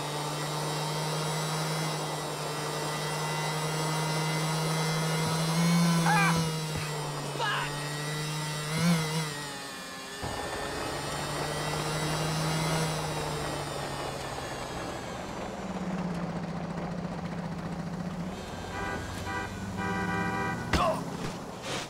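A motorbike engine hums steadily and revs up and down.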